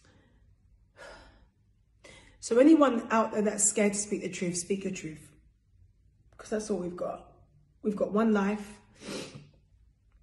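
A young woman speaks close by, with feeling and in pauses.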